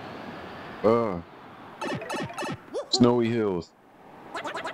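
A playful cartoon sound effect swoops up and down.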